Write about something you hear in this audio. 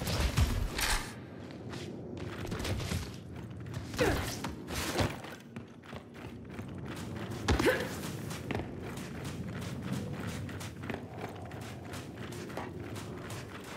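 Heavy footsteps thud quickly across a hard floor.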